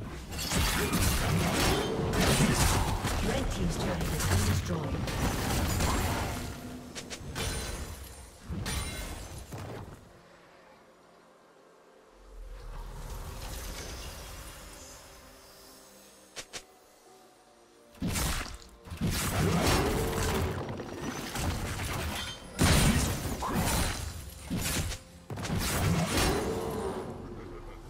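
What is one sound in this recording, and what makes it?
Spells crackle and blast in a fight between game characters.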